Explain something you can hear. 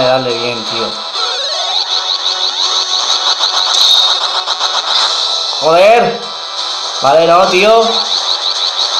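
Chiptune video game music plays steadily from a small speaker.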